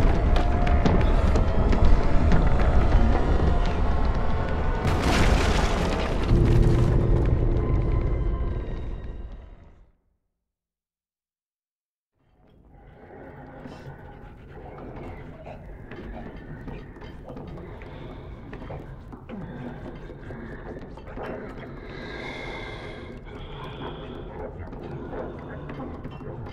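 Small footsteps patter quickly across a wooden floor.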